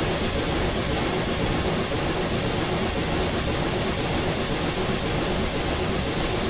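A steam locomotive chugs steadily along the track.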